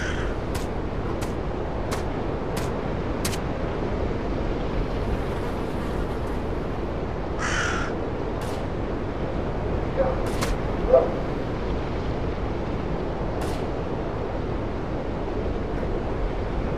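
Wind blows steadily outdoors.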